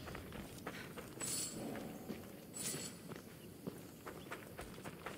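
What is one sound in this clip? Footsteps crunch on dry ground.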